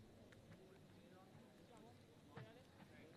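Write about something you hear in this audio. Women players call out faintly across an open outdoor field.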